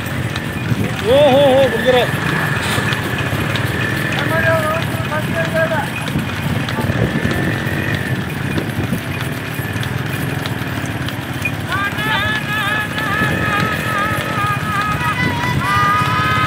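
Men shout and cheer outdoors.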